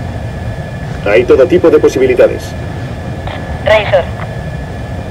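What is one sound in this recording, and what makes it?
A man speaks briefly over a crackling radio.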